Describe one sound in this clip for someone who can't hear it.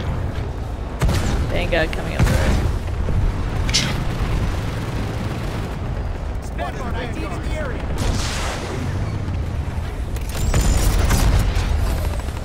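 A heavy cannon fires with loud blasts.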